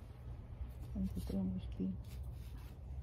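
A wooden marker is pushed into soil.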